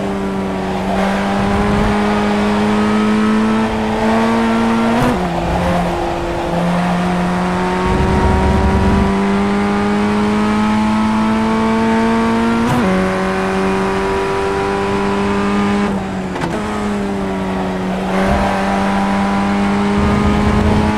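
A racing car engine screams at high revs, dropping briefly at each gear change.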